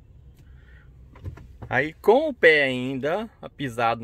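A car key clicks as it turns in the ignition.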